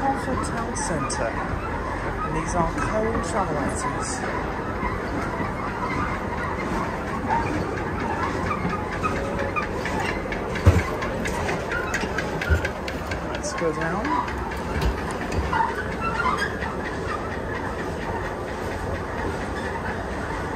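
A moving walkway hums and rattles steadily.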